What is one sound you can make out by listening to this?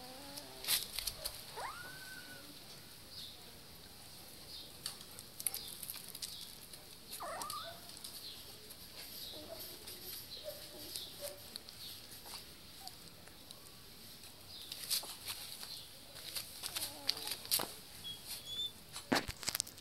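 Puppies scuffle and scrape on a hard floor.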